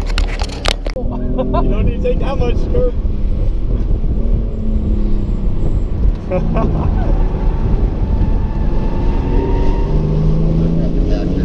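A car engine roars and revs as the car speeds along.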